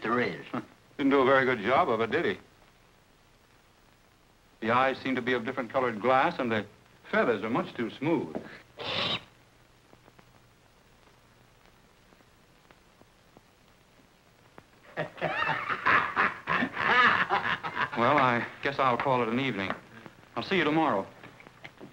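An elderly man speaks gruffly.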